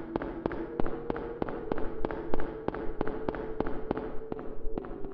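Footsteps run quickly with a hard, echoing tread.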